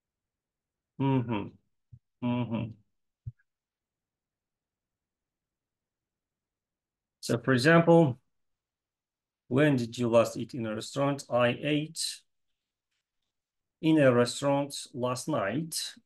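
A young man speaks calmly over an online call, in short phrases with pauses.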